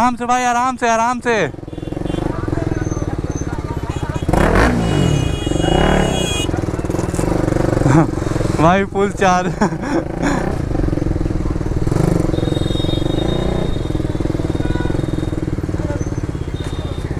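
A motorcycle engine idles and putters steadily up close.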